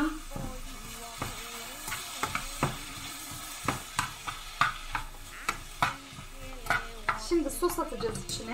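A spatula scrapes and clicks against a frying pan.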